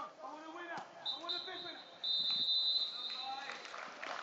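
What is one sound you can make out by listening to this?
A referee blows a long whistle.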